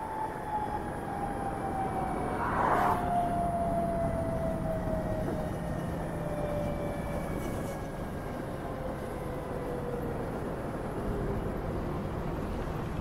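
A motorcycle engine hums and slowly winds down.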